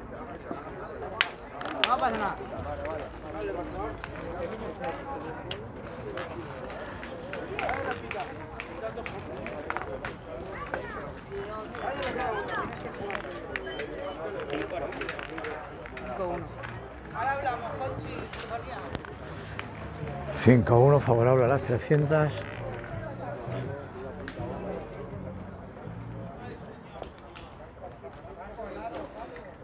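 Young men talk with each other outdoors, nearby and at a distance.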